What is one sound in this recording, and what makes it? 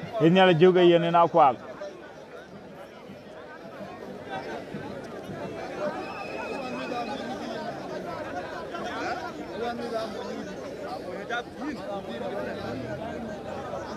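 A large crowd murmurs and chatters in the distance outdoors.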